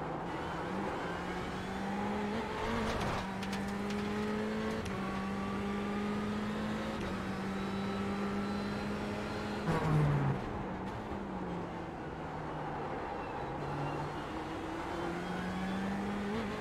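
A racing car engine drones steadily, its pitch rising through the gears and dropping as it brakes.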